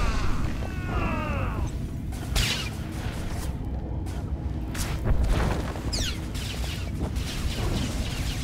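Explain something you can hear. A lightsaber hums and swings with sharp buzzing strikes.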